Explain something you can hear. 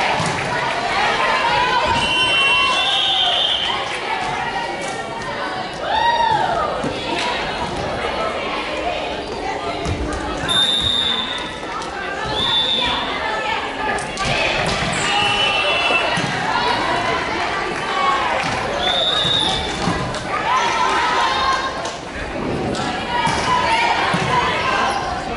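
Young women cheer and shout loudly.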